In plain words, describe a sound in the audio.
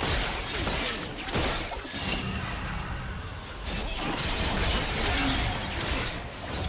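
Game spell effects and attacks crackle and whoosh in quick bursts.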